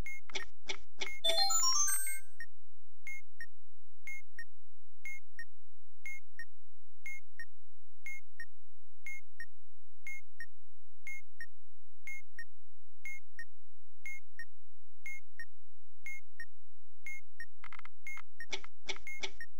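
A bomb timer ticks steadily, about once a second.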